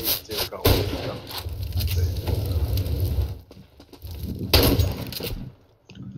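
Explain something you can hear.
A rifle fires a burst of sharp gunshots.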